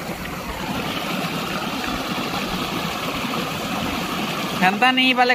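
Feet wade and splash through shallow water.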